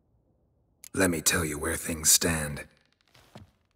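A man begs in a pleading, trembling voice.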